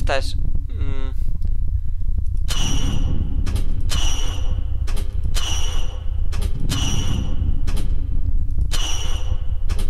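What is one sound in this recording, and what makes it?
A machine hums low and steadily.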